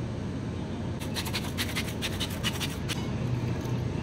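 A pepper mill grinds with quick rattling clicks.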